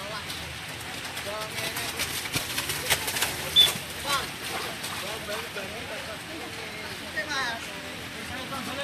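Young men shout to each other across an open field in the distance.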